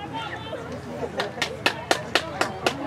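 Hockey sticks clack against a ball.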